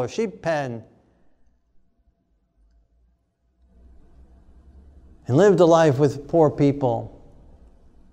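A middle-aged man speaks calmly into a clip-on microphone, with pauses.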